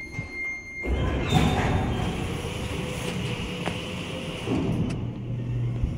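A metal elevator gate clatters and rattles open.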